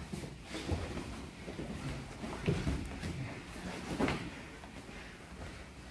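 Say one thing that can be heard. Fabric rustles and scuffs as two people grapple on a mat.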